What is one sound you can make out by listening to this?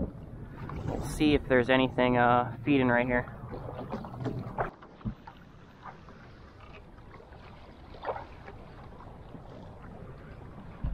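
Wind gusts outdoors over open water.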